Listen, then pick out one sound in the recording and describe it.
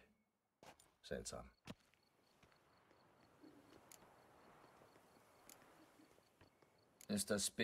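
A man speaks calmly, close by, answering.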